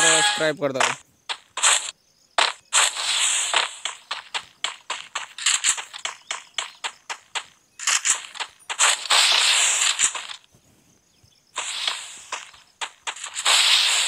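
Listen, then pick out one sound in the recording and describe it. Footsteps patter quickly as a game character runs.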